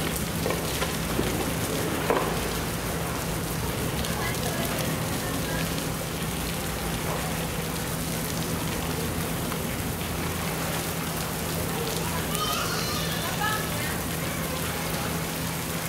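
Water splashes and sloshes as a large animal swims and thrashes about.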